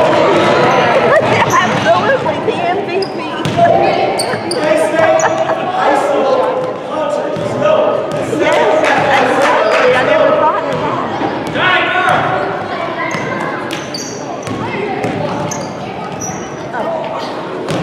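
Children and adults shout and cheer in a large echoing hall.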